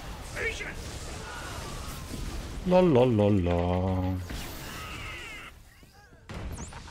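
Laser blasts and energy explosions crackle and boom in a fight.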